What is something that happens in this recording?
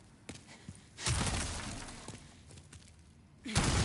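A sword whooshes through the air.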